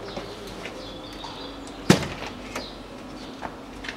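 A speaker snaps loose from a car door panel.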